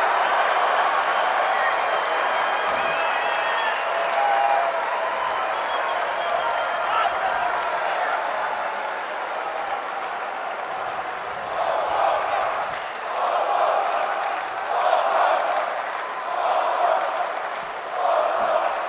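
A stadium crowd cheers and chants loudly outdoors.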